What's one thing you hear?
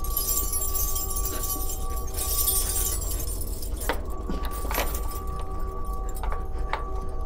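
Keys jingle and clink against a metal lock.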